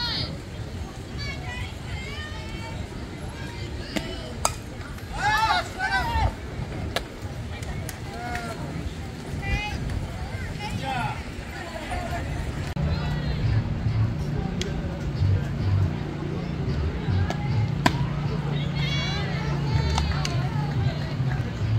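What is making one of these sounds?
Young girls shout and cheer across the field.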